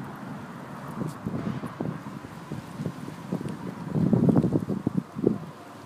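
A hedgehog snuffles and huffs as it sniffs through grass.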